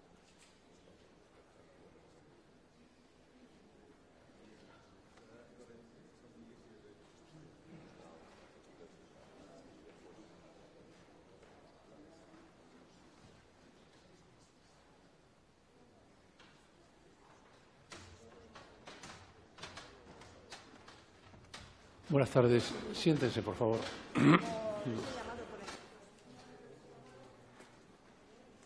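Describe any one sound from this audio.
People murmur quietly in a large room.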